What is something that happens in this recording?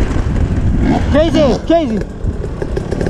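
A second dirt bike engine revs sharply nearby.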